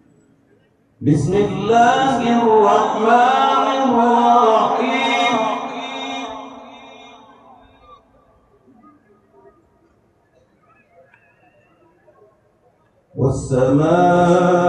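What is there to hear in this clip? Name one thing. An elderly man chants in a long, melodic voice through a microphone, echoing over loudspeakers.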